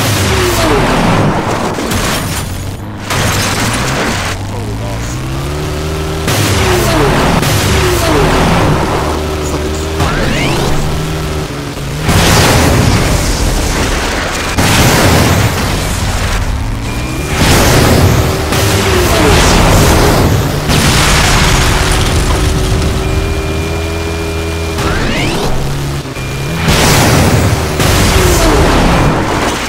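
Tyres crunch and skid on dirt.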